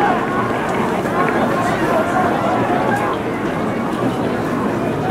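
A large crowd cheers and chants loudly throughout.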